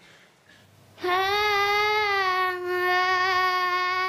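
A young girl sings a long, steady note into a microphone.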